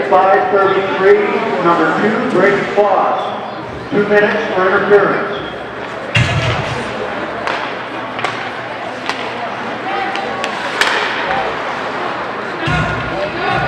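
Hockey skates scrape across ice.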